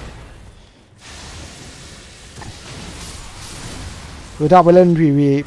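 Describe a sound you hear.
A fiery blast roars with a rushing hiss.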